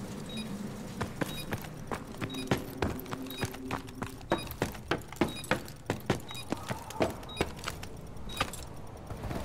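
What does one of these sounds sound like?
Heavy footsteps thud on a hard floor.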